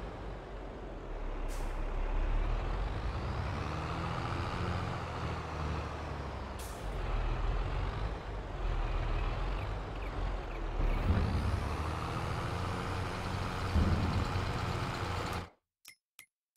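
A tractor engine rumbles steadily.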